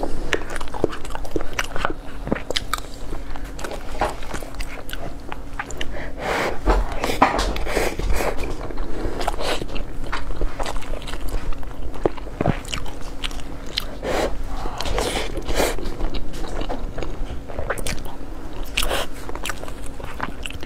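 A young woman chews food with wet, smacking mouth sounds close to a microphone.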